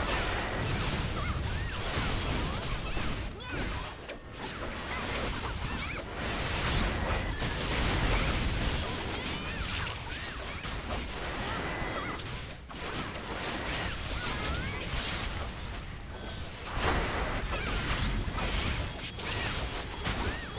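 Spells and weapon blows crash and clang in a fast fantasy battle.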